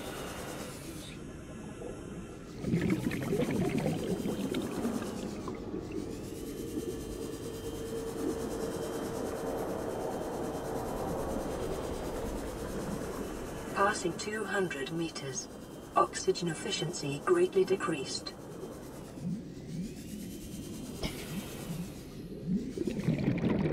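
Water rushes steadily past a small underwater craft.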